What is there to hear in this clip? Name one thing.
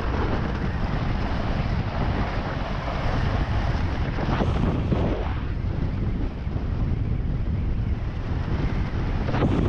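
Strong wind roars and buffets past.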